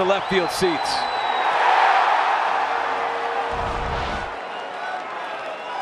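A stadium crowd cheers and roars loudly.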